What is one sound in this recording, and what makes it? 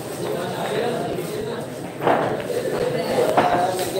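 Billiard balls click sharply together.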